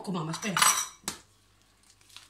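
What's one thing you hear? An egg cracks against a hard edge.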